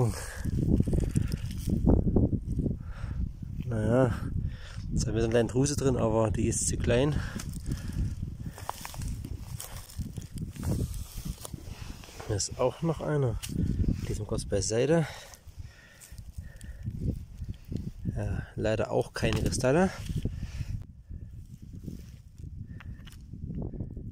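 Loose stones crunch and scrape as a hand shifts rocks on gravel.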